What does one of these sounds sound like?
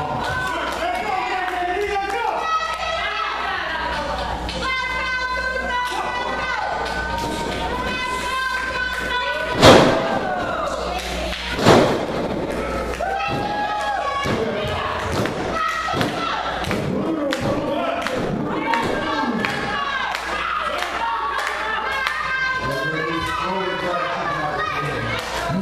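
A crowd shouts and cheers in a hall.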